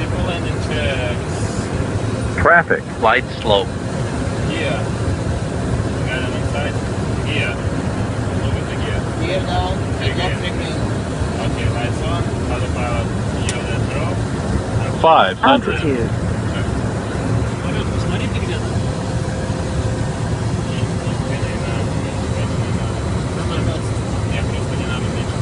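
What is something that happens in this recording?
Air rushes steadily past an aircraft cabin.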